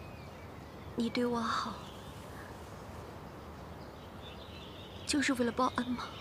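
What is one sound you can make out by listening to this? A young woman speaks tearfully, close by.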